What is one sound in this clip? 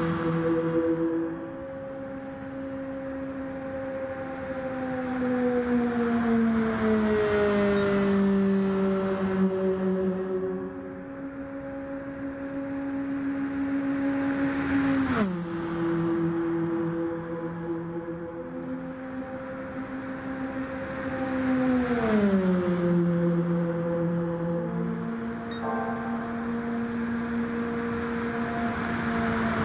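A race car engine roars steadily, its pitch dropping each time it sweeps past.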